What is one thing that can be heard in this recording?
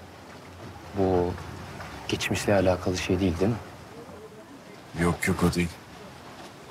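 A second young man answers calmly nearby.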